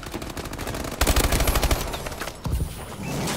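An automatic rifle fires a rapid, loud burst.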